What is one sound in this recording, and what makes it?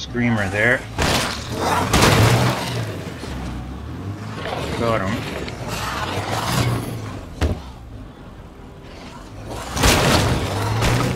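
Heavy thuds hit a car as it runs into figures on the road.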